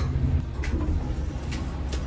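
Elevator doors slide open with a low rumble.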